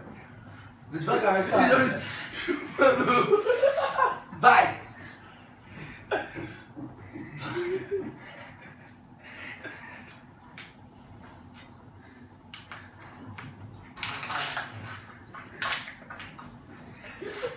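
A second young man laughs loudly close by.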